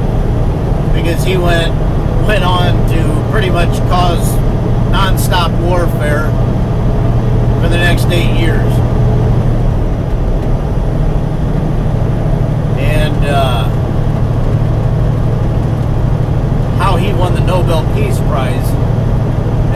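A man talks calmly and close by, in bursts.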